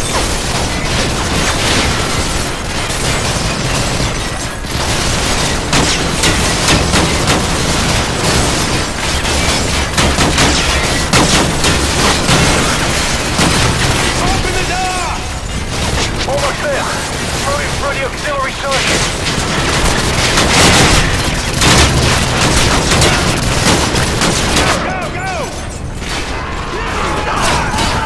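Heavy gunfire rattles rapidly against glass.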